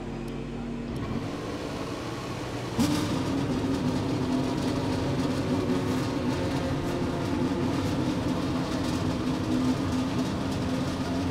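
A race car engine idles steadily close by.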